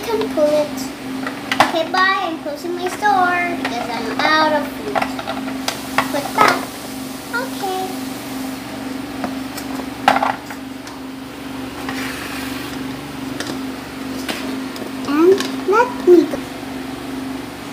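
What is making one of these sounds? Small plastic toys clatter against each other in a plastic bowl.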